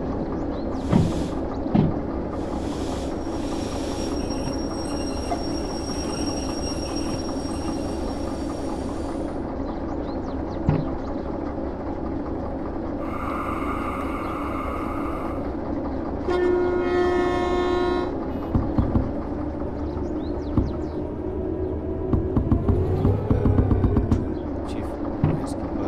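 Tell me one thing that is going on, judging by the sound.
Steel wheels clatter over rail joints.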